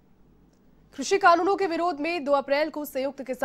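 A woman reads out the news clearly through a microphone.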